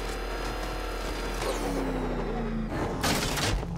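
A car engine roars and winds down as the car pulls to a stop.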